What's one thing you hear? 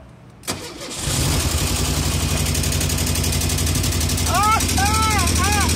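A car engine starts and runs with a steady rumble.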